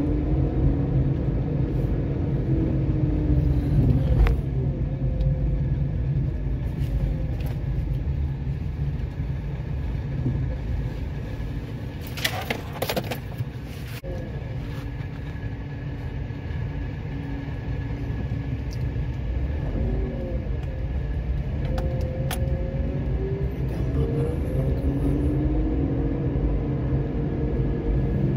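A car drives along a paved road, heard from inside.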